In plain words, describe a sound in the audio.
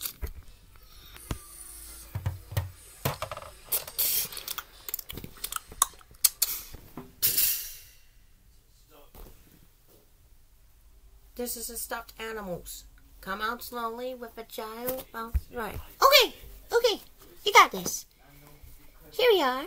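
Soft plush toys rustle and brush as hands handle them.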